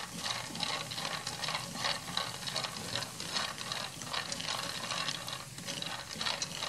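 Chopsticks stir peanuts, which rattle and scrape in a pan.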